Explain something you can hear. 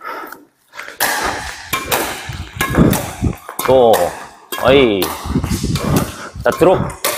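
A badminton racket sharply strikes a shuttlecock again and again.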